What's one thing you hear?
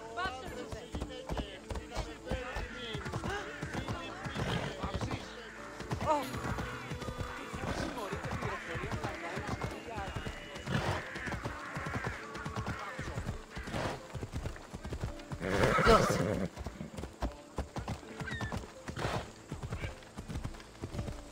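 Horse hooves clop steadily on stone and dirt.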